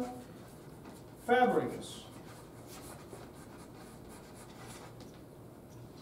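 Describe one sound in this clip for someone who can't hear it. Chalk scratches and taps on a chalkboard.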